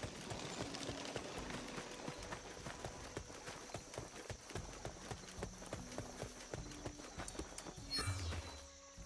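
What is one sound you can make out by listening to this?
Footsteps thud quickly on soft ground.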